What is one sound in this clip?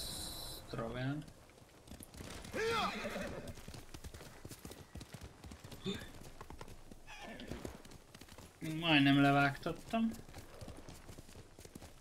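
A horse's hooves thud as it gallops.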